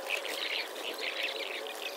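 Pigeons peck at grain on wood.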